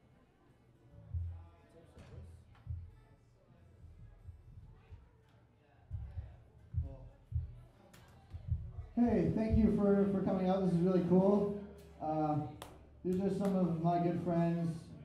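An electric bass plucks low notes.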